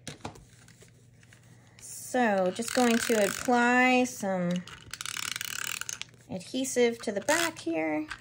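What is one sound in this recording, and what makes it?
A tape runner clicks and rolls adhesive onto paper.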